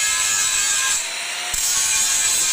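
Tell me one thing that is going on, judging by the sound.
An angle grinder's motor whirs freely for a moment between cuts.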